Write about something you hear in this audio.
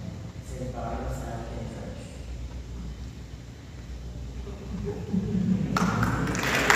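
A young man reads out into a microphone in a large echoing hall.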